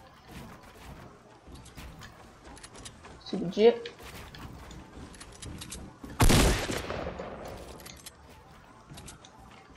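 Wooden building pieces clack into place in a video game.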